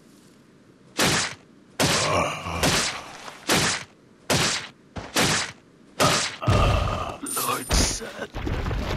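Heavy blows land in quick succession.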